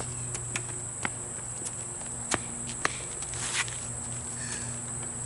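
A basketball bounces on pavement.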